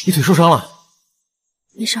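A young man speaks with concern up close.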